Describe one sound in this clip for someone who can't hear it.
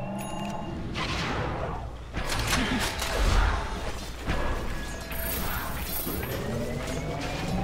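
Magic spells burst and crackle in a video game battle.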